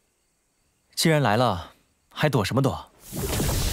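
A young man speaks calmly.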